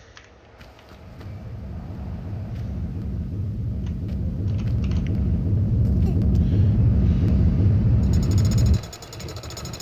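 A heavy stone boulder rumbles as it rolls, growing louder, then stops.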